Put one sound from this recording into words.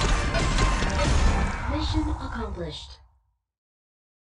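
Video game battle sounds and music play, then stop abruptly.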